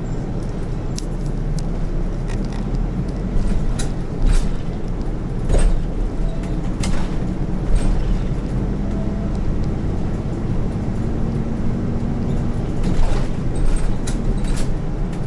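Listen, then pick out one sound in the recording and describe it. The bus body rattles and clatters over the road.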